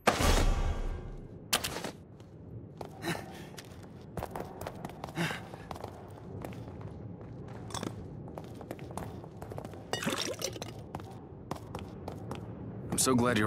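Footsteps thud quickly on hard stairs and floor.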